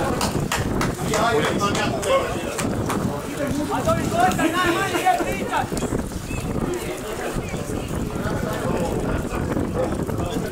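Young men shout to each other across the field.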